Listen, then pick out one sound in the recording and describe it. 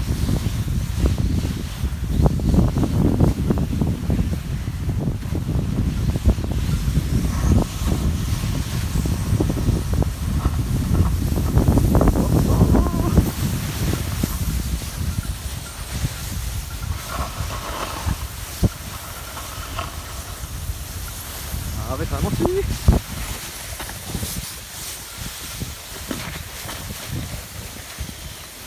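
Crampons crunch and scrape in snow with each step.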